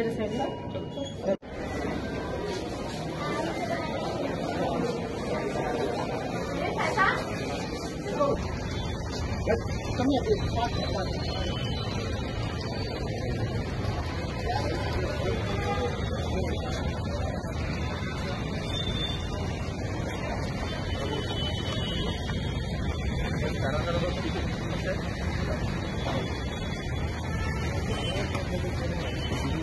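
A crowd of men talk and murmur nearby.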